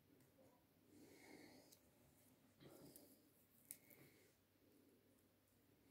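Fingers softly handle and shift pieces of fruit.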